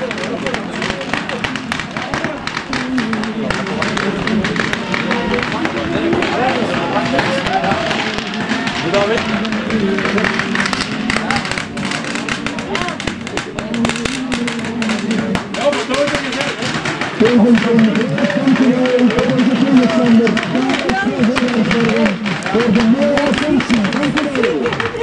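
A crowd of football fans sings and chants loudly outdoors.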